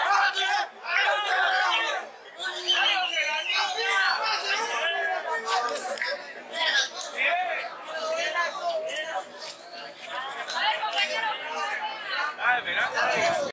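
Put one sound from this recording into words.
A crowd of young men shout and cheer excitedly outdoors.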